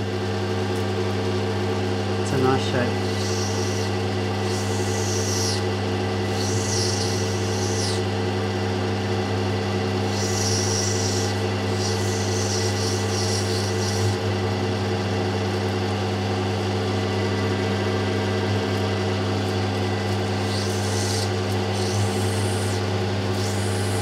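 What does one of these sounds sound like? A polishing wheel hums steadily.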